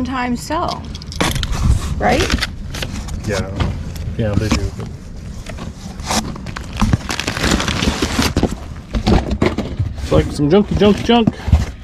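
Cardboard flaps bump and scrape.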